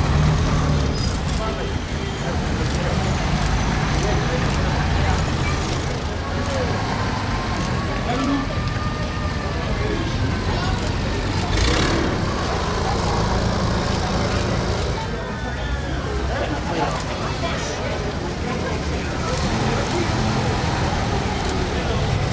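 Old military jeep engines rumble past at low speed.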